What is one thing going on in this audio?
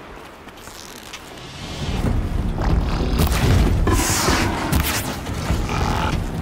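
A bowstring creaks as it is drawn.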